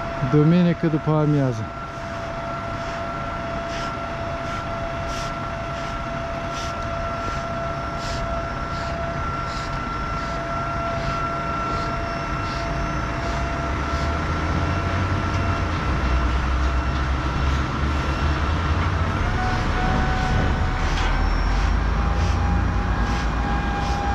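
A truck engine runs steadily nearby.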